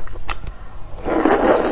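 A young woman slurps noodles loudly close to a microphone.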